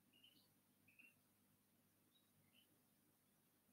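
Short, soft electronic chimes play from a game.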